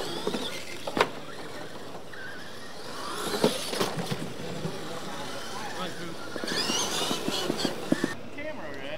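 Plastic wheels thump on wooden ramps.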